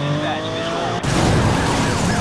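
A car crashes with a loud smash of metal and glass.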